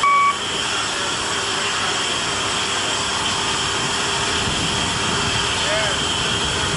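A heavy cargo ramp lowers with a steady mechanical hum.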